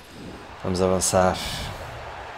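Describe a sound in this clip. A young man speaks briefly into a headset microphone.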